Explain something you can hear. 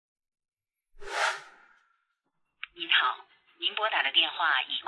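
A young man speaks through a phone, sounding frustrated.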